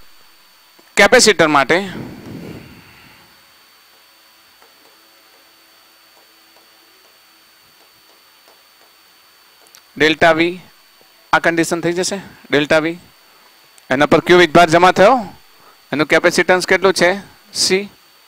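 A man speaks clearly through a headset microphone, explaining in a steady teaching voice.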